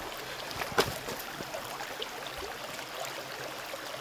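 A shallow stream trickles over stones.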